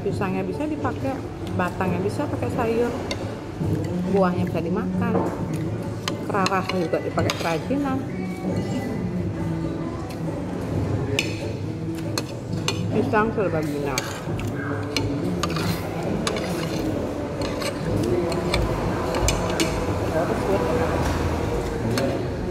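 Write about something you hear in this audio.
Metal cutlery clinks and scrapes on a plate.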